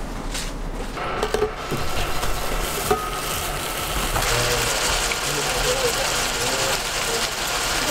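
Meat sizzles loudly on a hot griddle.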